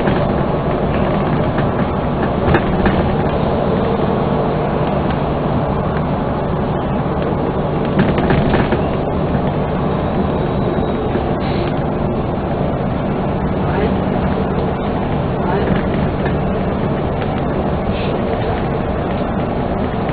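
A vehicle's engine rumbles steadily as it drives along a highway.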